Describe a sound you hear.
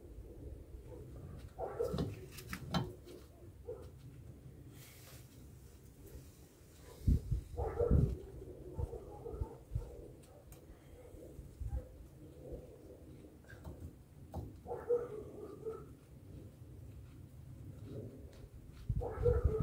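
Metal parts clink and knock as a brake drum is handled.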